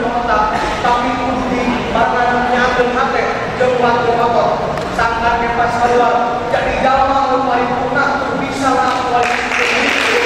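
A teenage boy declaims loudly and with animation in a large echoing hall.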